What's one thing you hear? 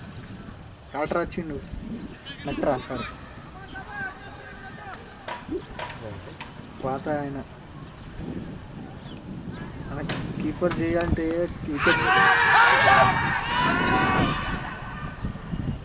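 Men call out and shout across an open field.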